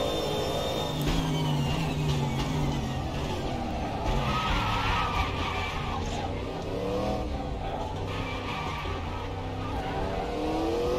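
A racing car engine drops in pitch as it slows and downshifts.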